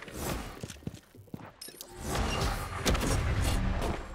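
A landing whooshes and splashes into water.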